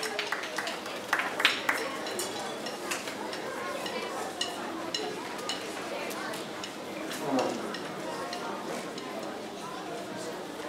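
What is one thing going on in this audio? Musical instruments clack and clink as players get ready.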